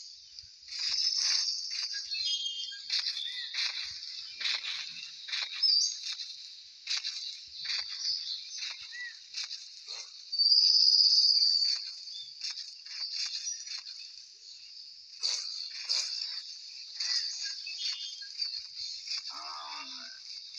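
A large creature's footsteps thud along steadily.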